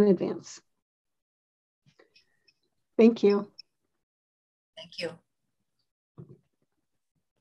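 An elderly woman speaks in short bursts over an online call.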